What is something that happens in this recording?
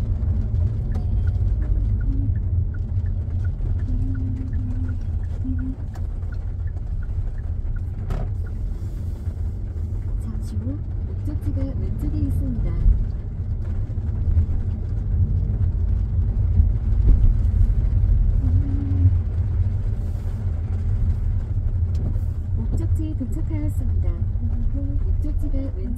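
Raindrops patter on the windscreen.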